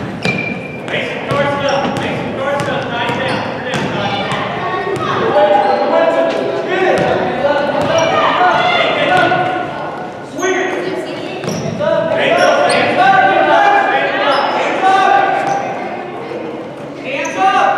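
Spectators shout and cheer from the side.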